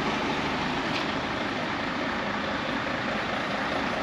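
A car drives by on the pavement.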